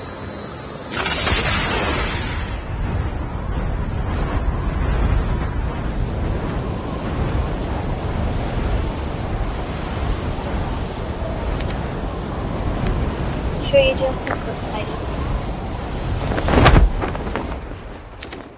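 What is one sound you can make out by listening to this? Wind rushes loudly during a fall through the air.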